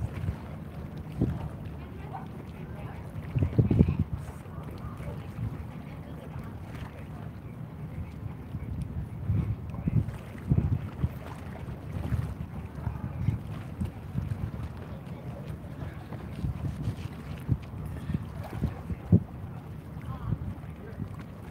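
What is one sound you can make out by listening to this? Wind buffets the microphone outdoors with a low rumble.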